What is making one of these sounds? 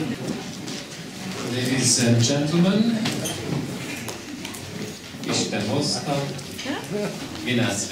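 An audience of men and women murmurs in a room.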